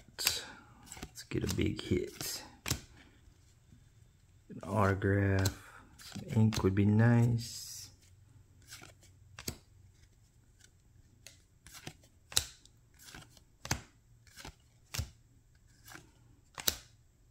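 Trading cards snap and flick as they are shuffled by hand.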